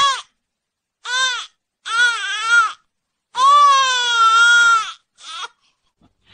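A young man wails in a high, exaggerated voice.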